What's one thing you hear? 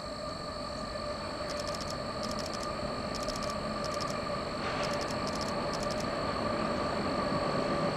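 A train's wheels clatter rhythmically over the rails.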